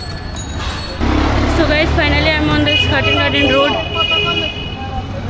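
A woman speaks calmly, outdoors.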